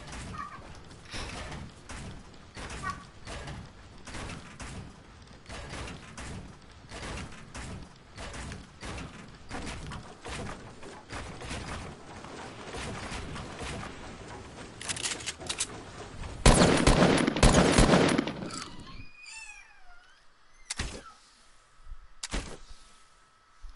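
A young boy talks into a microphone.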